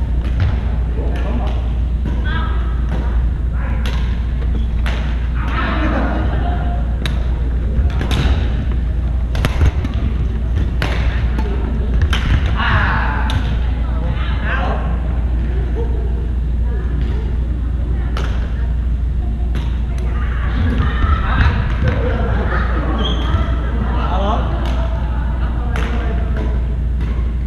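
Players' shoes squeak on the hard floor.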